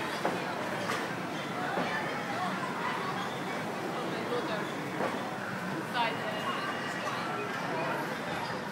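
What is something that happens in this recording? Children chatter and call out nearby in a large echoing hall.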